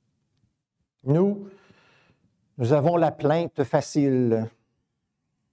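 An elderly man speaks slowly and deliberately through a microphone, with long pauses.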